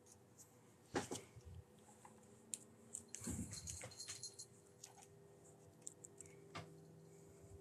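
Thin wire clicks and scrapes softly as hands bend it.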